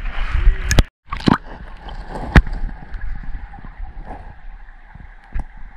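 Water burbles and rumbles, muffled as if heard from underwater.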